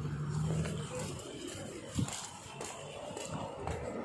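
Footsteps walk on pavement.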